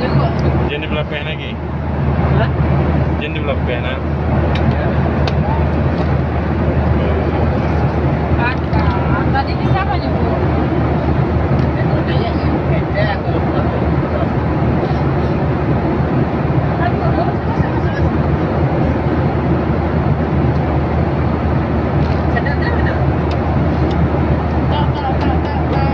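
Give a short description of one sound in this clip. A plane's engines drone steadily throughout.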